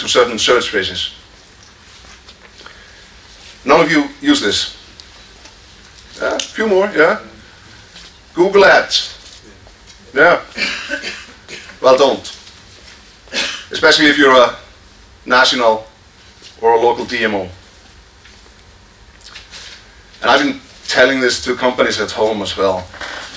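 A man speaks calmly through a microphone in a large echoing hall, pausing between phrases.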